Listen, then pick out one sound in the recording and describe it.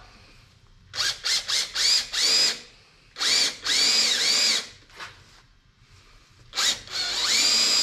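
A cordless drill whirs in short bursts as it bores into wood.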